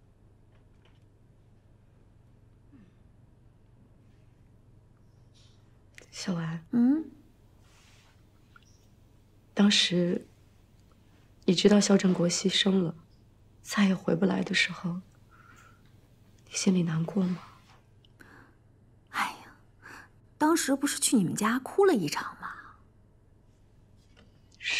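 A young woman answers quietly up close.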